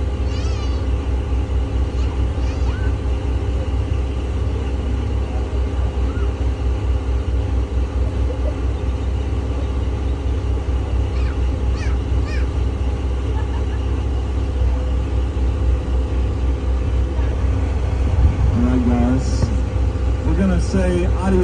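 Water splashes against a boat's hull.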